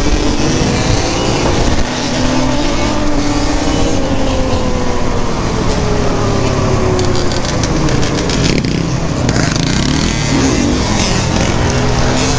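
Dirt bike engines buzz nearby and pass by.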